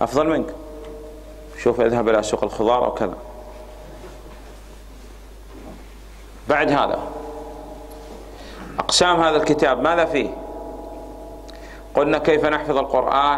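A man speaks calmly in phrases with pauses, heard through a microphone in an echoing hall.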